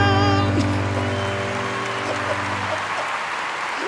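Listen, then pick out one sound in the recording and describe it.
A sustained keyboard chord rings out and fades away.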